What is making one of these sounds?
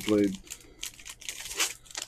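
A foil card pack wrapper crinkles in hands.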